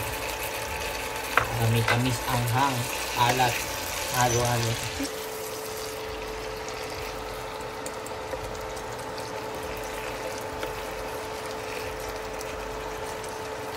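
Food sizzles softly in a hot frying pan.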